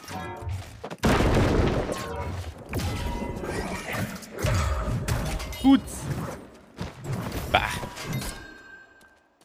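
Heavy weapon blows thud and crash in a fight.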